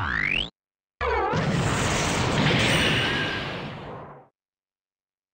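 An explosion booms and slowly fades.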